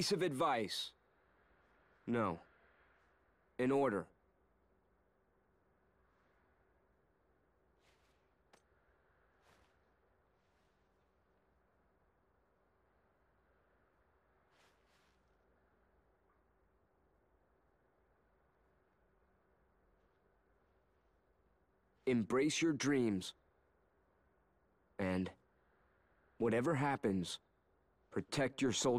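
A young man speaks calmly in short phrases.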